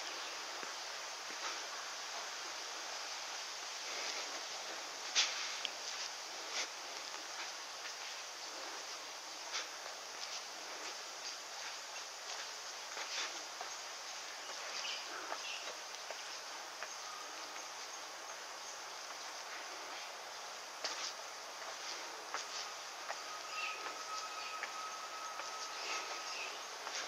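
Footsteps scuff on stone paving and steps.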